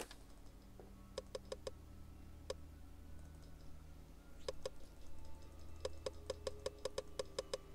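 Short soft clicks tick quickly as items are picked.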